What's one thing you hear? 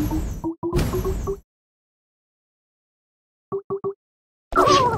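Bright chiming game tones ring out in quick succession.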